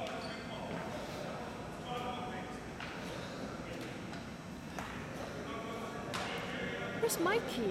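Players' voices call out and chatter in a large echoing gym.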